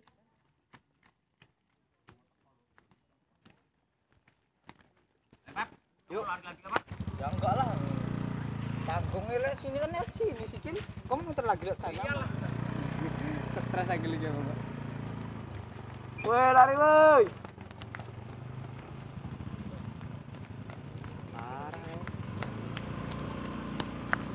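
Bare feet patter on a dirt road.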